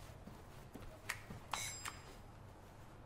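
A woman knocks sharply on a door.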